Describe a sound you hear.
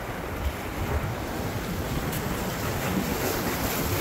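Waves splash against rocks.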